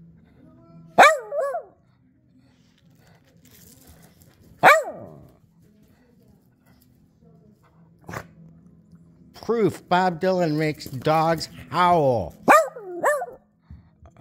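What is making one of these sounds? A dog whines and howls up close in short rising and falling cries.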